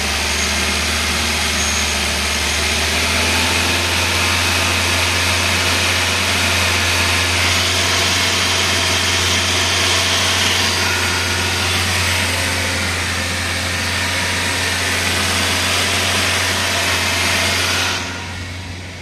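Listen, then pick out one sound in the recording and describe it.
A car engine idles loudly and steadily close by with a rattling whir.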